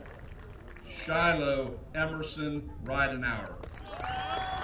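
A woman reads out names through a loudspeaker outdoors, with echo.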